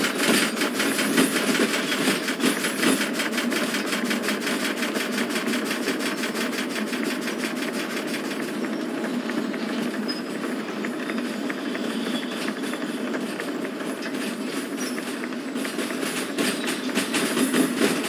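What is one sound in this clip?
A freight train rumbles along the rails.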